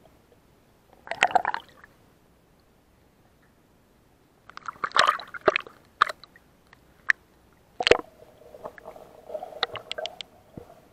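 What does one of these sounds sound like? Muffled underwater bubbling and clicking come and go.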